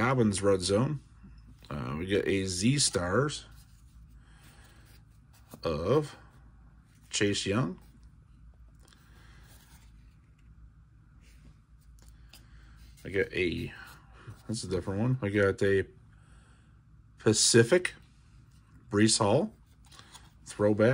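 Stiff cards slide and rustle against each other in hands.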